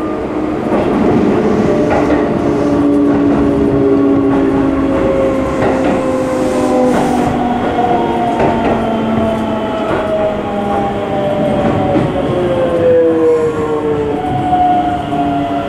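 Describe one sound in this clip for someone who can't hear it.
A train rumbles along the tracks, heard from inside a carriage.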